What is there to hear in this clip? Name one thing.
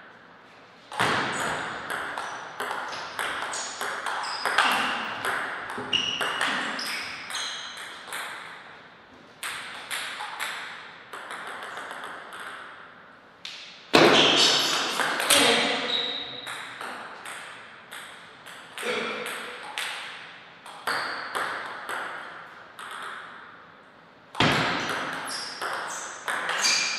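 A table tennis ball clicks back and forth off paddles and the table in an echoing hall.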